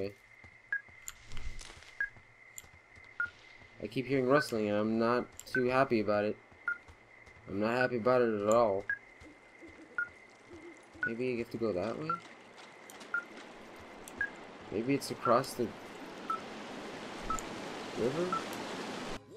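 A handheld device beeps in short, even pips.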